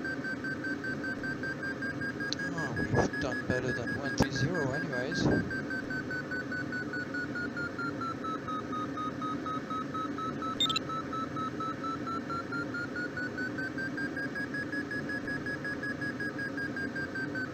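Wind rushes steadily past a glider in flight.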